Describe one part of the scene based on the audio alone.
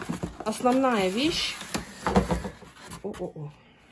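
Foam packing scrapes and squeaks against cardboard.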